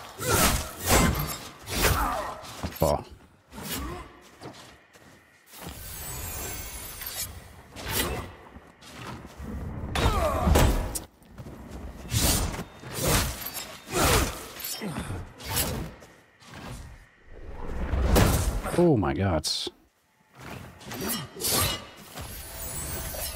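A spear slashes and strikes enemies in quick blows.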